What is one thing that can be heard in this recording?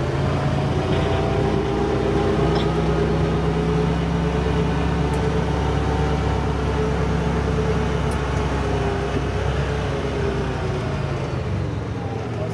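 An engine hums steadily.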